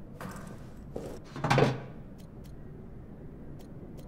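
A wooden chest lid thumps open.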